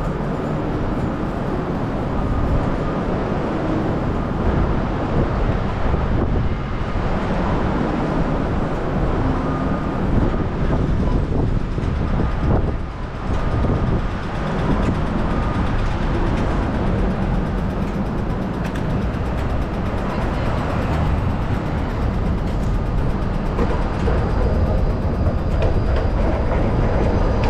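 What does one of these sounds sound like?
Traffic hums steadily through a busy city street outdoors.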